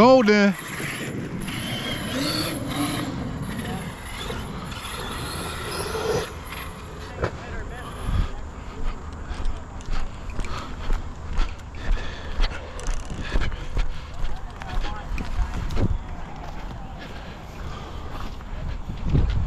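Bike tyres roll and crunch over a bumpy dirt track.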